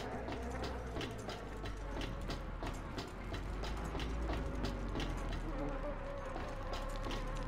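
Heavy boots clank steadily on a metal walkway.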